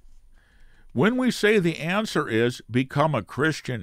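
An elderly man speaks calmly and close into a microphone.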